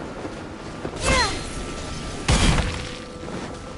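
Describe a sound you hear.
A loud magical blast bursts out.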